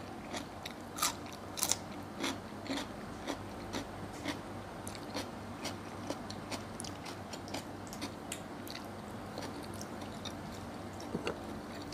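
A woman chews food with small smacking sounds close by.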